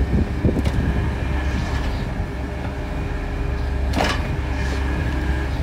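A small excavator's diesel engine rumbles steadily close by.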